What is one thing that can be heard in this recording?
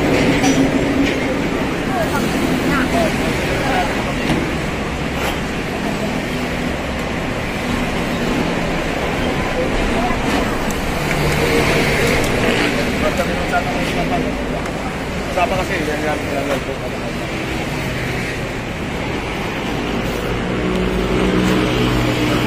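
Men talk with each other close by.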